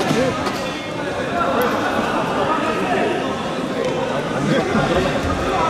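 A crowd of spectators chatters steadily in a large echoing hall.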